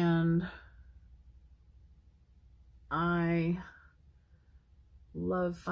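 A woman sings short, held notes close by.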